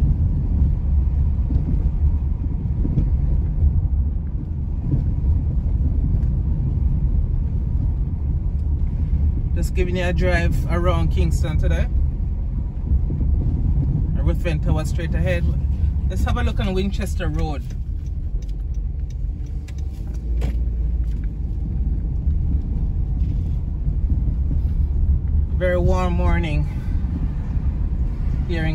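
A car drives steadily along a paved road with a low, constant rumble.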